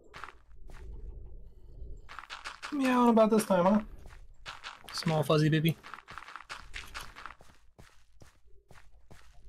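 Footsteps crunch on grass and dirt in a steady walking rhythm.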